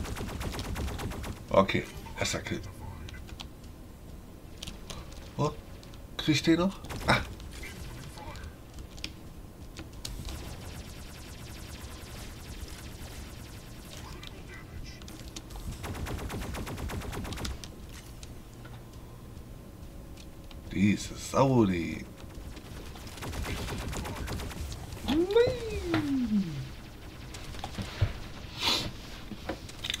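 Game gunfire crackles and bangs.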